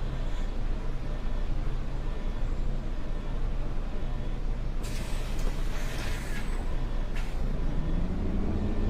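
A bus engine idles with a low hum.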